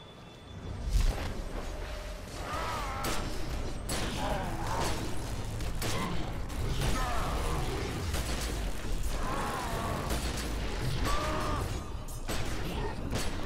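Gunshots and blasts crack during a fight.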